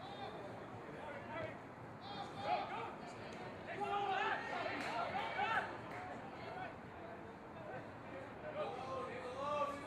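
Rugby players shout to each other across an open field.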